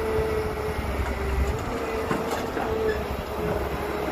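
Dirt and rocks tumble from an excavator bucket into a truck bed.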